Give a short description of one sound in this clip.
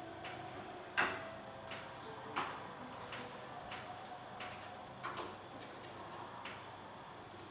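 A man taps on a laptop keyboard.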